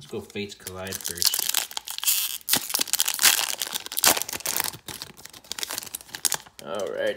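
A foil wrapper crinkles and tears close by.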